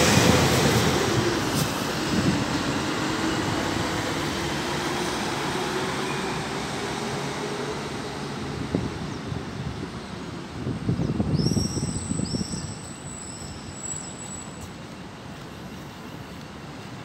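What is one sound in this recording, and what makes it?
City traffic hums steadily in the distance outdoors.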